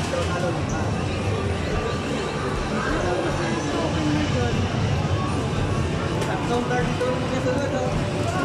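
An arcade game plays loud music and sound effects through its speakers.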